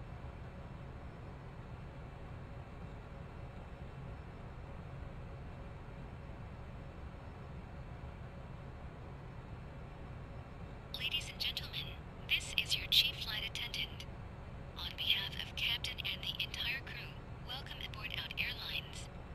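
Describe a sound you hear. Aircraft engines hum low and steady at idle.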